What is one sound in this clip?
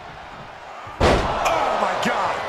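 A wrestler slams an opponent onto the ring mat with a heavy thud.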